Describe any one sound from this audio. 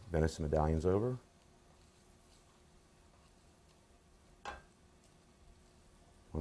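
A metal utensil scrapes and clinks in a pan.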